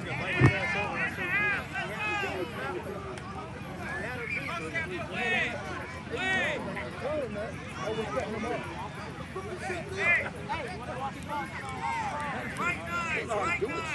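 A crowd of people chatters and calls out outdoors at a distance.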